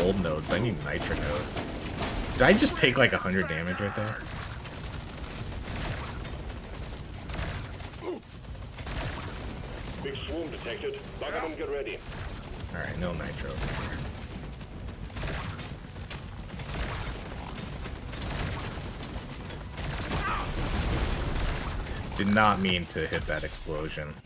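Laser guns fire in rapid bursts.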